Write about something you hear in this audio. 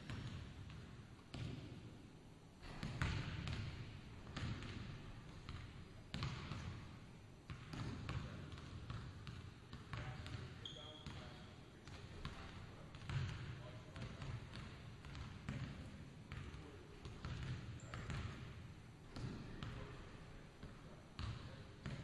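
Basketballs bounce on a hardwood floor in a large echoing gym.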